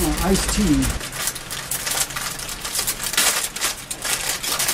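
Wrapping foil crinkles and rustles in hands close by.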